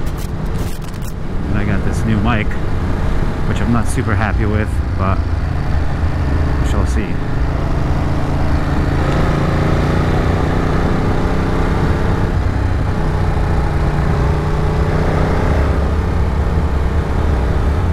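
A motorcycle engine hums steadily and rises and falls in pitch.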